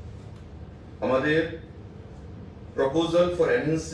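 A man speaks calmly into microphones close by.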